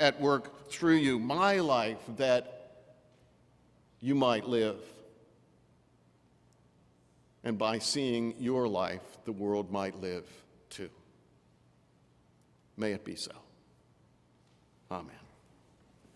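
A middle-aged man speaks slowly and calmly through a microphone in a large echoing hall.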